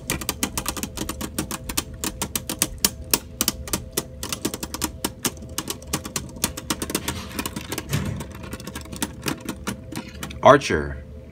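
Spinning tops clatter and click against each other in a plastic arena.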